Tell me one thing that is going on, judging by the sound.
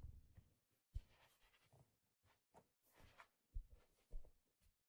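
Fingers softly tap on a hat's brim.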